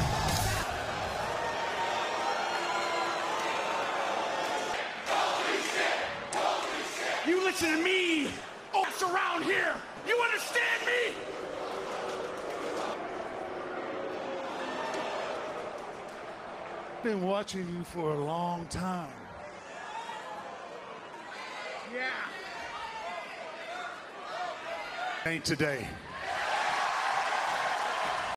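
A crowd cheers and chants loudly in a large arena.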